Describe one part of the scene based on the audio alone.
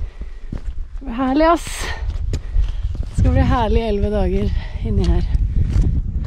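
A young woman talks cheerfully and laughs close to the microphone.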